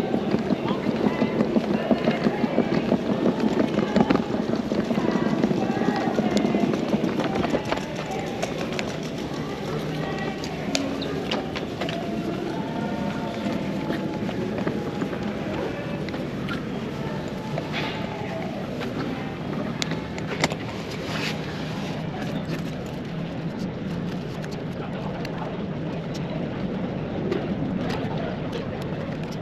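Many people talk in a murmur through a large echoing hall.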